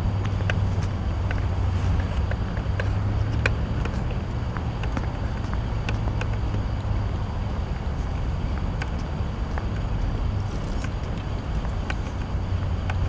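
Footsteps tap on a paved path.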